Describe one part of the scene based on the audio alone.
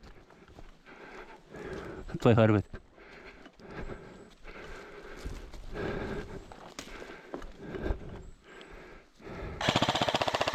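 Clothing and gear rustle with each step.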